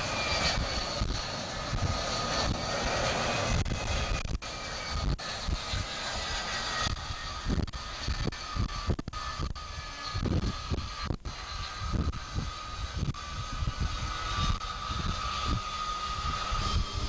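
A jet engine whines loudly and steadily nearby.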